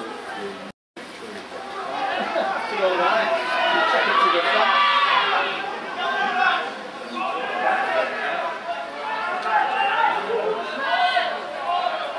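Male players shout to each other during play.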